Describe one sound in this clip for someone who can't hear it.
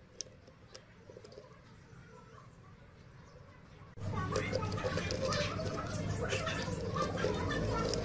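Fingers press and rub on a plastic casing.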